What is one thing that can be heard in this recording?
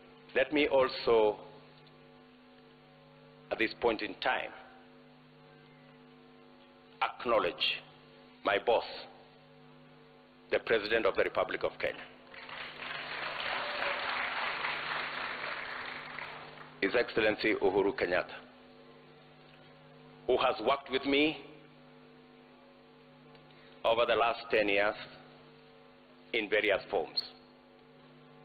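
A man speaks slowly and firmly through a microphone in a large hall, pausing often.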